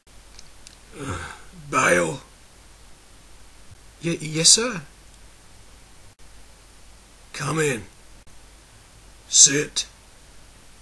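An elderly man calls out loudly in a gruff voice.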